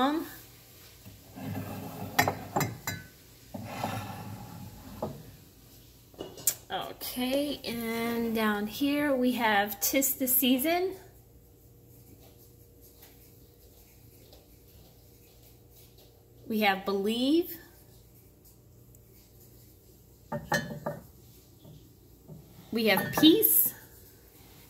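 Ceramic mugs clink and knock against each other as they are moved by hand.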